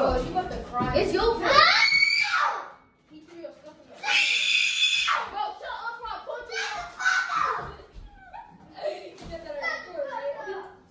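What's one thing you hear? A young person speaks close by with animation.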